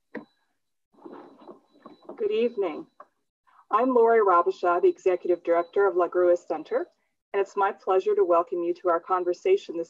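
A middle-aged woman speaks cheerfully through an online call.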